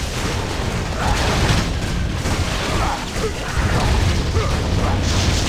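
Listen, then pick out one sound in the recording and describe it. Magic spells crackle and burst in rapid succession.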